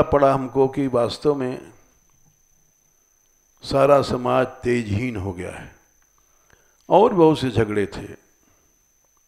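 An elderly man speaks calmly in short bursts through a headset microphone, with pauses between them.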